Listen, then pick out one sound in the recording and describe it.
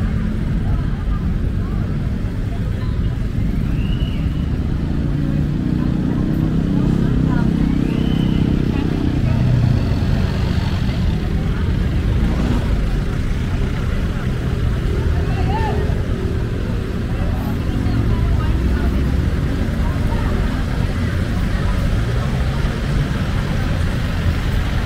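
Vehicle engines idle and rumble close by.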